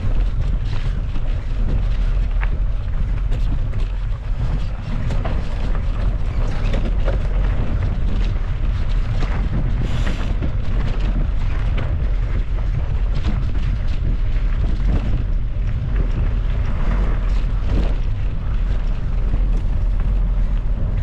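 Bicycle tyres crunch and rattle over a rough dirt trail.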